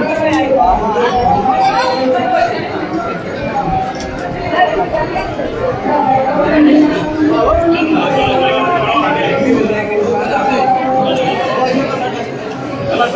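A crowd of men chants and calls out loudly nearby.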